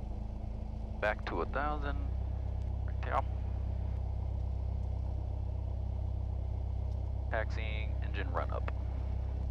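A man speaks briefly over a headset intercom.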